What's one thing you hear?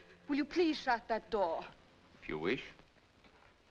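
A young woman sobs and wails close by.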